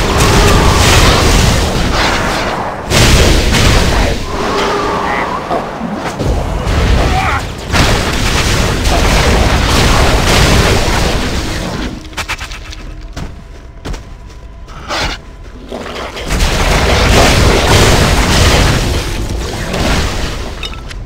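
Magic spells crackle and burst loudly in a game battle.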